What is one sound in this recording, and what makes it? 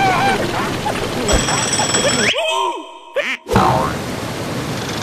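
Water splashes loudly as a large fish leaps out.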